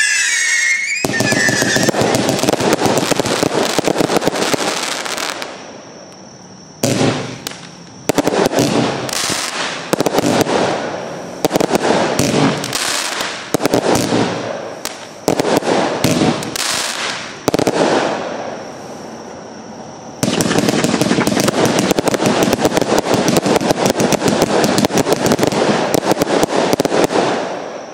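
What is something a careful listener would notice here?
Firework stars crackle and pop in the air.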